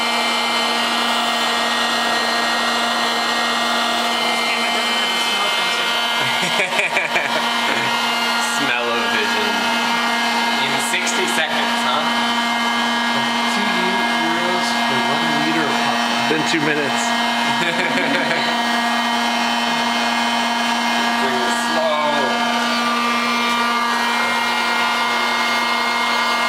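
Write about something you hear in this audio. A vending machine hums steadily.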